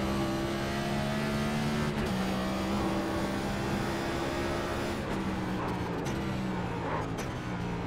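A race car engine roars steadily, shifting gears as it speeds along.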